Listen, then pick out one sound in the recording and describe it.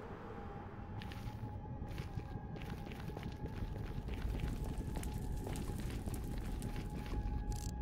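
Footsteps crunch on the ground.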